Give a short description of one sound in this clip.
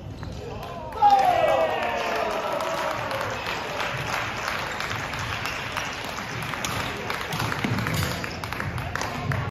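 A crowd of spectators cheers and chatters.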